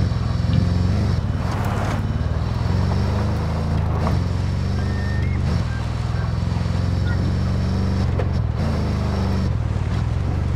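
Tyres crunch over dirt and grass.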